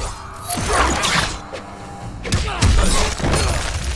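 An icy blast whooshes and crackles.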